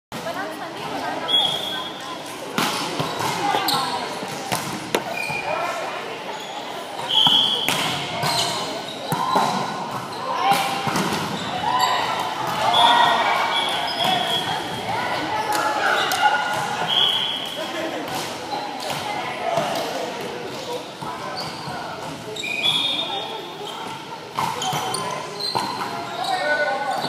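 A volleyball thumps off hands and arms now and then.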